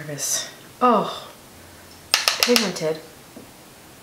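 A young woman speaks close by, briefly and lightly.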